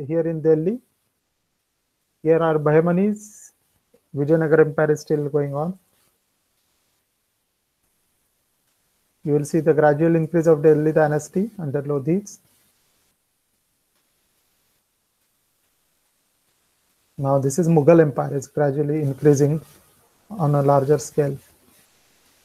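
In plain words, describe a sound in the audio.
A man speaks calmly through an online call, pausing between phrases.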